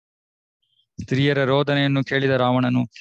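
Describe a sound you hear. A man speaks through a headset microphone on an online call.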